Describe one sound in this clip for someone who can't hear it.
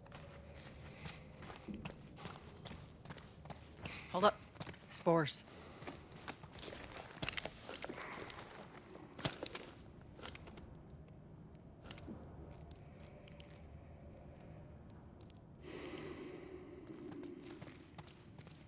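Footsteps sound on a hard floor.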